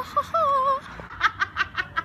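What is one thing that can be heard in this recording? A teenage girl talks close by.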